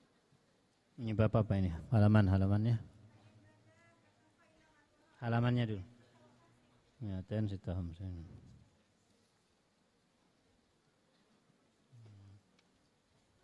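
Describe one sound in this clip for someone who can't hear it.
A man chants in a drawn-out, melodic voice through a microphone, pausing between phrases.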